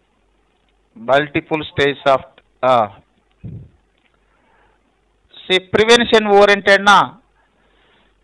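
A man speaks calmly and clearly into a microphone, in short bursts with pauses.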